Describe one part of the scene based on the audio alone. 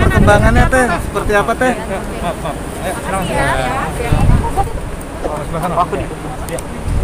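A woman talks excitedly close by.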